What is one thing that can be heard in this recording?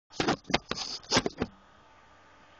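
An acoustic guitar is strummed.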